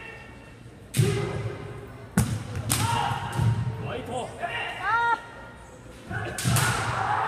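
Bamboo swords clack against each other and strike armour.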